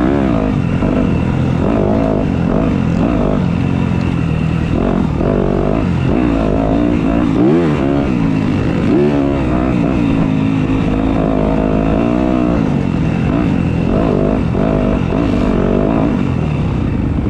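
Another dirt bike engine buzzes a little way ahead.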